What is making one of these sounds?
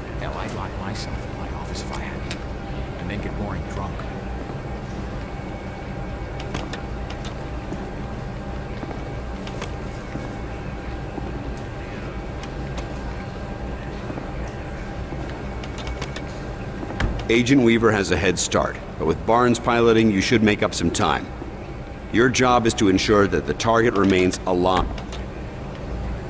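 Menu buttons click softly now and then.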